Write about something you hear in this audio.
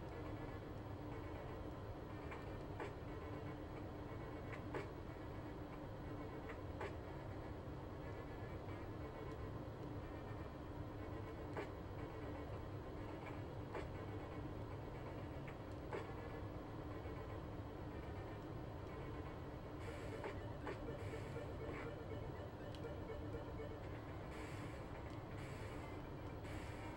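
Chiptune video game music plays steadily.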